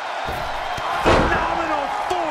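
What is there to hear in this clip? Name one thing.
A body slams hard onto a wrestling mat with a thud.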